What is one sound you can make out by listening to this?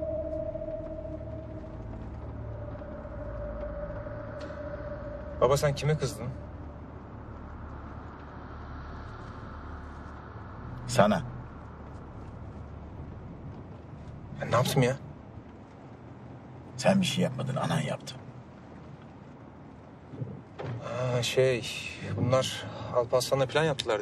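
A car engine hums softly.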